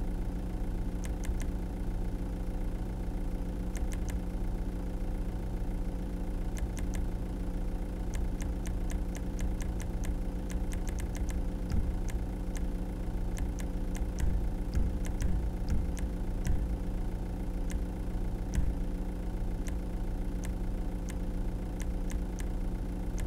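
Soft menu clicks tick in quick bursts.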